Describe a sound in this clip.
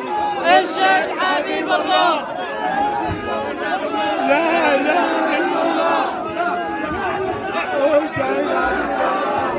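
A woman cries and wails, close by.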